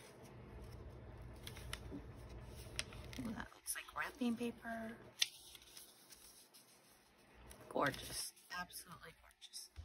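A plastic sleeve crackles as it is handled.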